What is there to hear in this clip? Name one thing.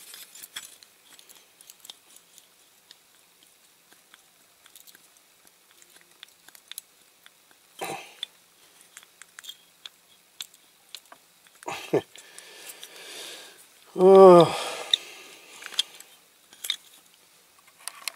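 Small metal parts click and tick as fingers handle them.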